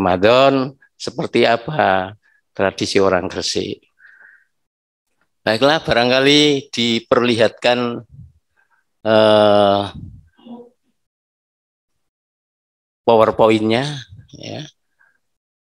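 A middle-aged man talks calmly through an online call.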